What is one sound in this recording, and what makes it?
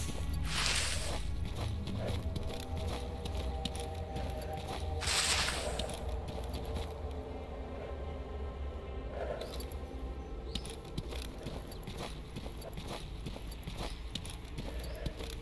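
Footsteps crunch steadily through dry grass and brush.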